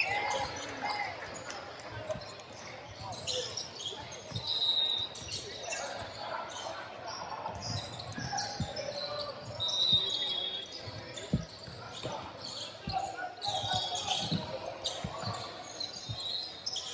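Young players and spectators shout and call out nearby.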